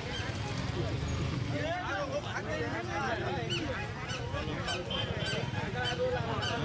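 A crowd of men murmurs and talks over one another outdoors.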